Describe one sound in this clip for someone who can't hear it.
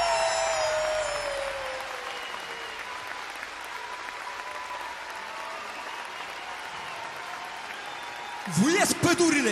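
An audience applauds and cheers in a large hall.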